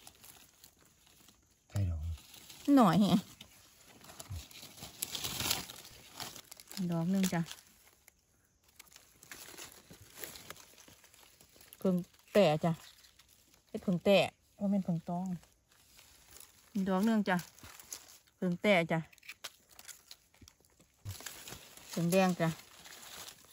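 Dry leaves rustle and crackle as hands dig in them.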